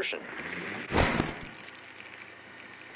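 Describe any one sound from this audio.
Static crackles and hisses in a short burst.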